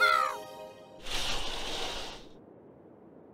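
A curtain swishes open.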